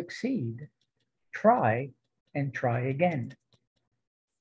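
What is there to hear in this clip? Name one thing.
An adult man speaks calmly through a microphone on an online call.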